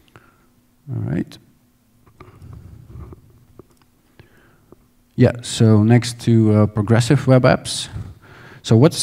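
A man speaks calmly into a headset microphone.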